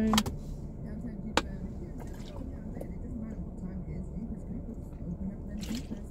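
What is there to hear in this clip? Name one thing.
A plastic bottle crinkles as a woman drinks.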